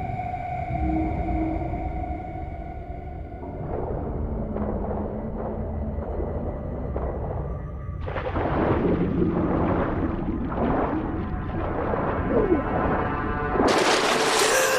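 Bubbles gurgle underwater.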